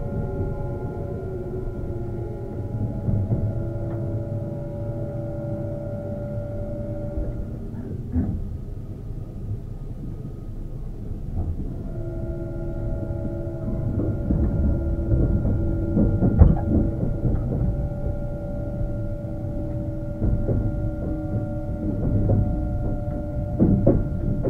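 An electric train's motors hum with a steady whine close by.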